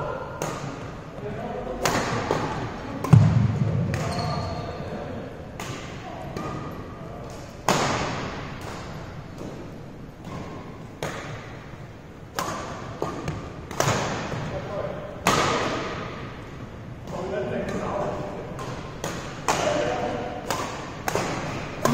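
Badminton rackets smack shuttlecocks with sharp pops in a large echoing hall.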